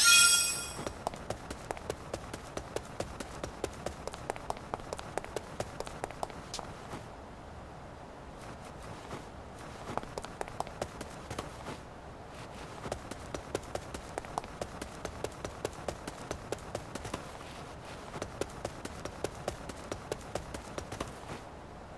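Running footsteps patter on stone paving.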